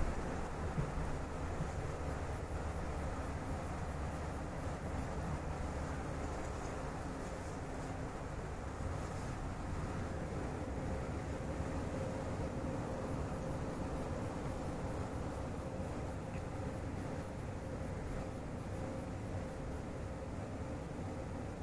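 An electric motor hums steadily under the train.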